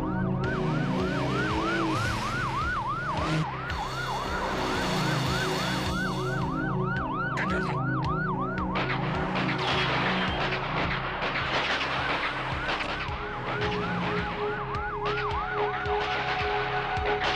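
A police siren wails rapidly up and down.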